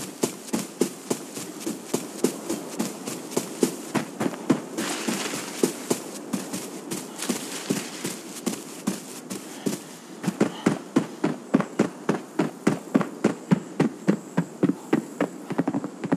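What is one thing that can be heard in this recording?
Footsteps crunch quickly and steadily through grass and over gravel.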